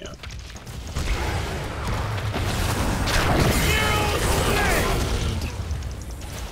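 Magic blasts and explosions boom and crackle in a fast fight.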